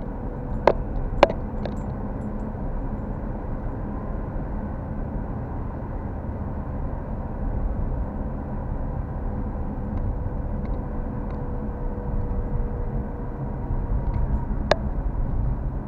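A car engine hums steadily while driving, heard from inside the car.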